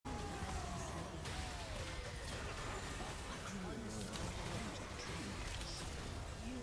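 Game spell effects whoosh and crackle.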